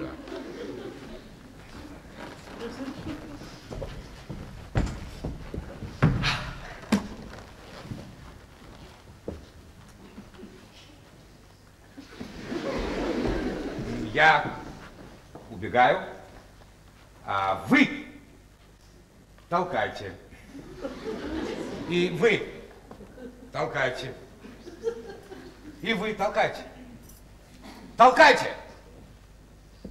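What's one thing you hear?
A man speaks with animation from a stage.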